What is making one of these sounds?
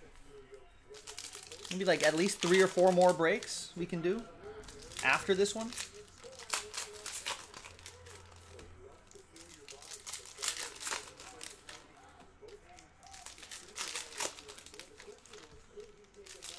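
Foil card wrappers crinkle and tear as hands rip them open.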